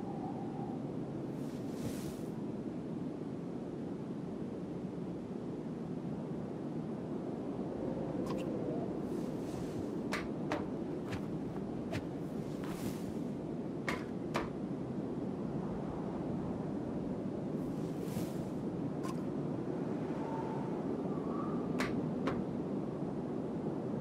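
Wind blows steadily in a snowstorm.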